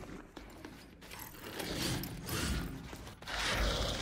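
Footsteps rustle through dense plants.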